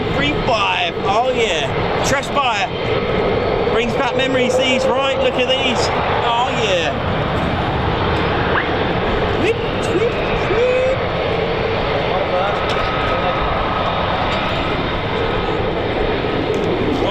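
A jet engine roars steadily nearby as a fighter plane taxis slowly.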